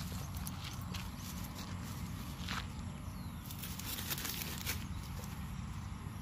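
A balloon squeaks as it is rubbed on paper.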